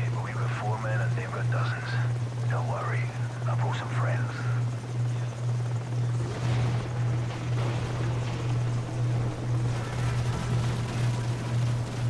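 A helicopter hovers overhead with a steady low drone.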